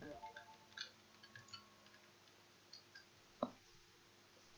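Short electronic game blips and chimes sound.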